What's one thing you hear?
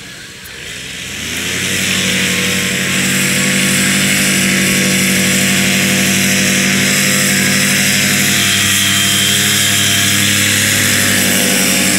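A paramotor engine revs up and roars steadily nearby.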